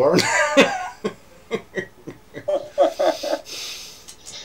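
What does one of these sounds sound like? An older man laughs over an online call.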